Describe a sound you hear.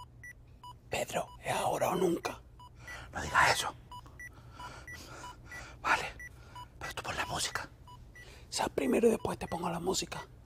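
A young man speaks nearby with animation.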